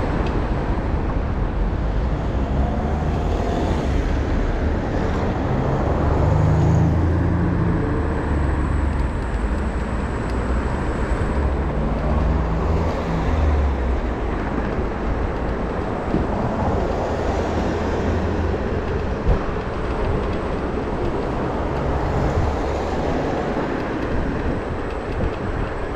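A vehicle engine hums low.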